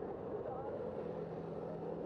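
A motor scooter drives past.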